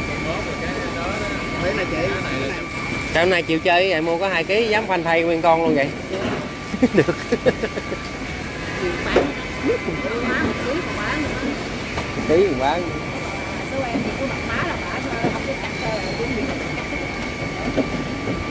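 A busy crowd chatters all around.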